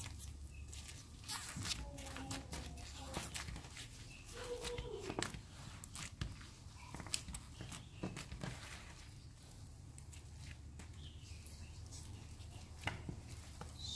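Sticky slime squishes, crackles and pops as hands knead it.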